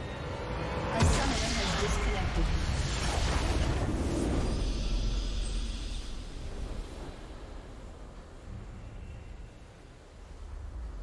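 A triumphant video game victory fanfare plays.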